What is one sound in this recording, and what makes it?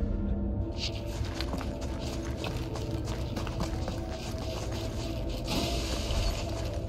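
A low, steady rumble fills a large echoing cavern.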